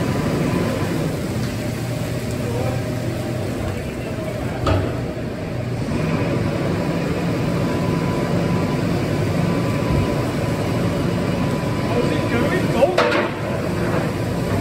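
A tractor engine rumbles steadily in a large echoing shed.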